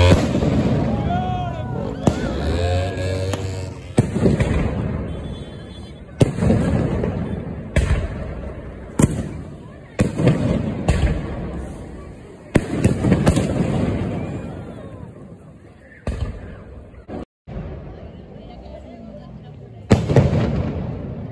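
Fireworks crackle as they burst into sparks.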